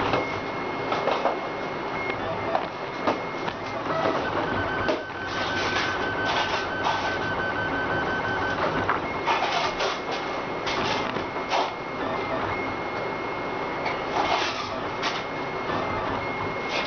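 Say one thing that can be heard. A 3D printer's stepper motors whir and whine in steady, shifting tones as the print head moves.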